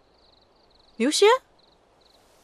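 A young woman speaks in a short, rising burst close by.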